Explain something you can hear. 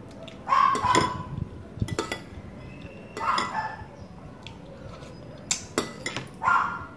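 Cutlery clinks against a bowl.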